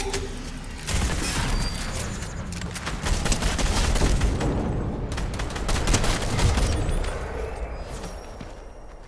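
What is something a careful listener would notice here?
Rapid gunfire rattles in sharp bursts.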